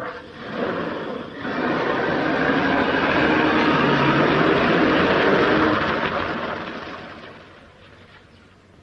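A car engine runs as the car drives off and fades away.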